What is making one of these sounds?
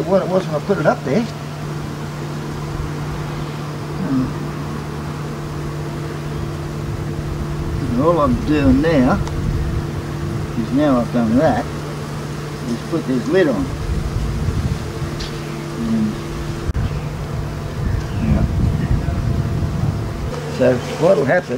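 Bees buzz steadily and close by.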